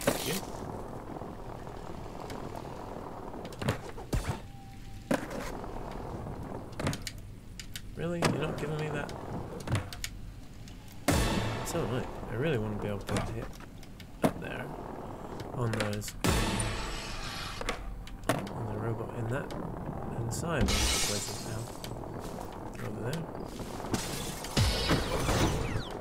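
Skateboard wheels roll and clatter on concrete.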